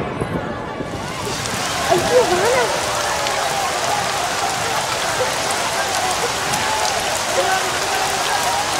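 A large crowd chatters and cheers outdoors.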